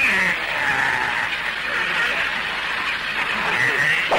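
A man speaks with alarm nearby.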